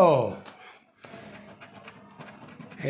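A coin scratches across a stiff card.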